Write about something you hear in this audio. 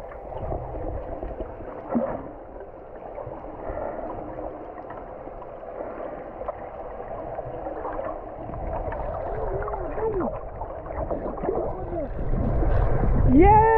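Water rushes and bubbles, muffled underwater.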